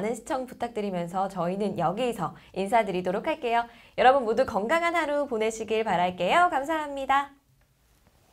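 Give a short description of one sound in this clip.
A young woman speaks cheerfully and clearly into a microphone nearby.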